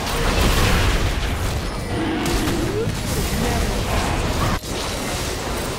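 Game combat hits thud and clang.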